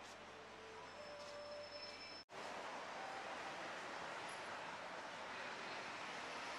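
Traffic hisses steadily along a nearby road.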